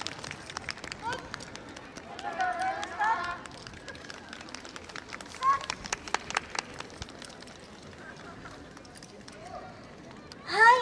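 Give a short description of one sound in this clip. Young women shout short calls together outdoors.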